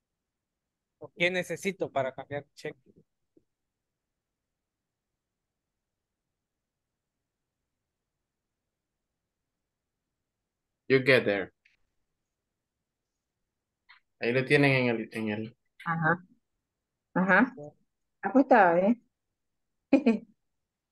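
A young man speaks calmly over an online call, in short phrases with pauses.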